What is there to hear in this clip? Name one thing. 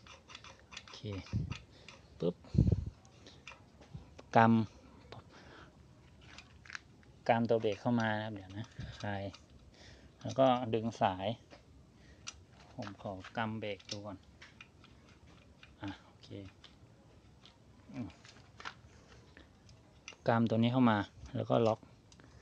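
Small metal bicycle parts click and rattle as they are handled.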